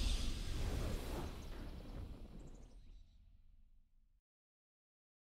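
A triumphant game fanfare swells with a booming low rumble and slowly fades away.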